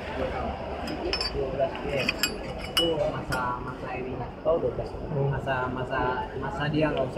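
Small metal parts clink as a hand handles them.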